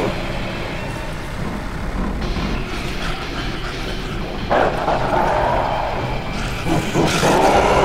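Footsteps clank on a metal grating walkway.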